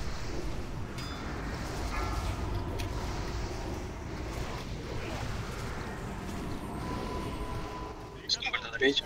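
Magic blasts whoosh and crackle amid a noisy battle.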